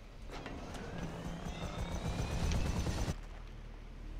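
A helicopter engine hums and its rotor whirs close by.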